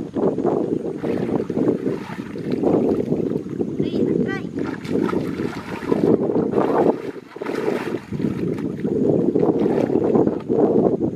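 Water splashes and sloshes as a person wades and pulls up weeds.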